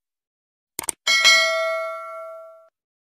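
A small bell rings brightly and slowly fades.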